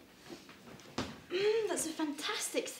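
A girl speaks happily nearby.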